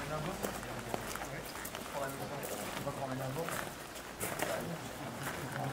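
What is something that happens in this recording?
Several men chat casually nearby outdoors.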